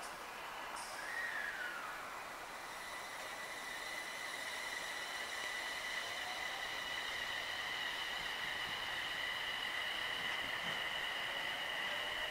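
An electric train's motor hums with a steady high whine.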